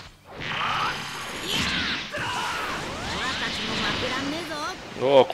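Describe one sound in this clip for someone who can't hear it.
An energy blast whooshes and roars loudly.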